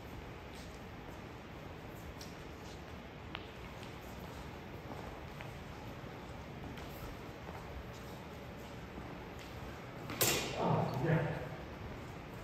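Sneakers squeak and thud on a hard floor.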